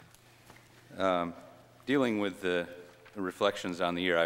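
A man speaks into a microphone, heard through a loudspeaker in an echoing room.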